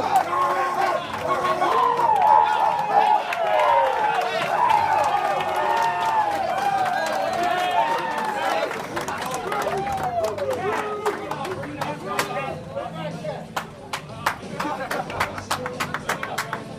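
A crowd of young men cheer and shout excitedly close by.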